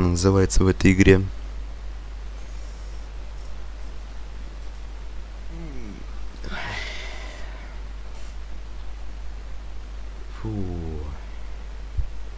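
A young man speaks briefly and casually into a close microphone, with long pauses.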